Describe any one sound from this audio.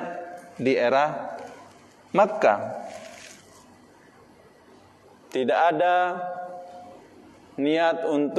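A man chants slowly into a microphone, his voice echoing in a reverberant room.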